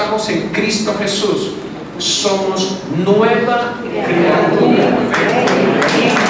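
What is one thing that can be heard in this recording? A middle-aged man preaches loudly and with passion into a microphone, heard over loudspeakers in an echoing room.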